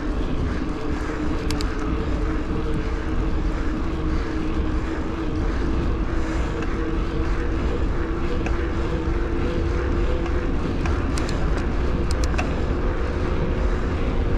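Wind rumbles steadily past a moving bicycle.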